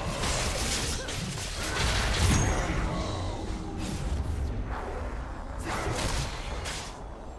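Magical spell blasts whoosh and crackle in a fast game battle.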